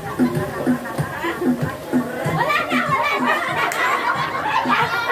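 A group of young women cheer and shout excitedly nearby.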